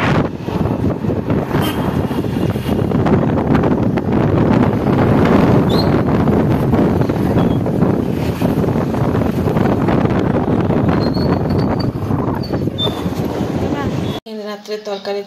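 Wind buffets loudly past a moving open vehicle.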